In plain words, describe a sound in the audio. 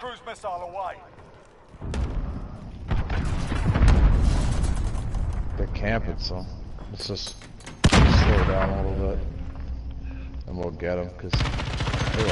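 Gunshots ring out in short bursts.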